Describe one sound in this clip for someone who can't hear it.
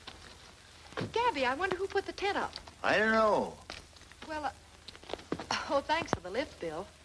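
A woman speaks with animation nearby.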